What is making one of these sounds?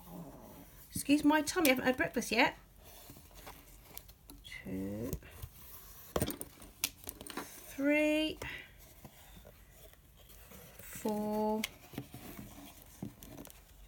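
Hands tap and rustle against a hardcover book.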